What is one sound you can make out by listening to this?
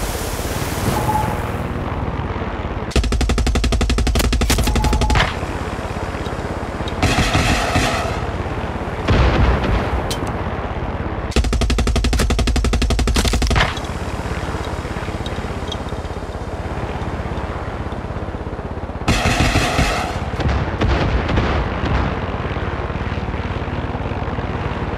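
A helicopter's rotor thumps steadily throughout.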